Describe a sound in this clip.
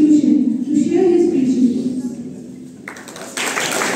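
A woman speaks into a microphone over a loudspeaker in an echoing hall.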